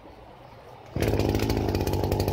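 A brush cutter blade slashes through tall grass and weeds.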